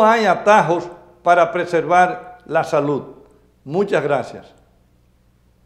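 A middle-aged man speaks formally into a microphone.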